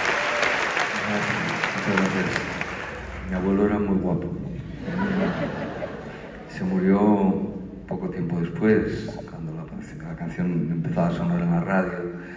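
An elderly man speaks calmly through a microphone over loudspeakers in a large hall.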